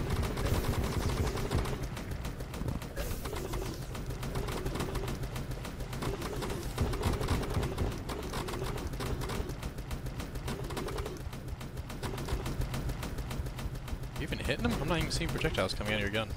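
Rapid magical shots fire in quick succession.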